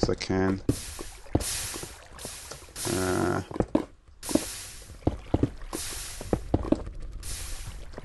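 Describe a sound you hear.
Stone blocks are placed with dull, quick thuds.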